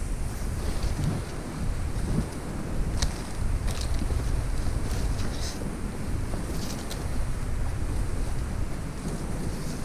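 Footsteps crunch on dry leaves and twigs.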